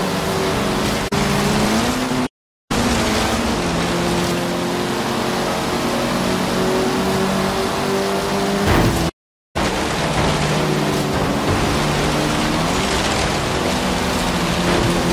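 A car engine roars at high revs, shifting up through the gears.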